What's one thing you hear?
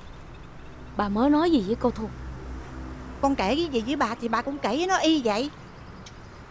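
A young woman talks back in a worried voice.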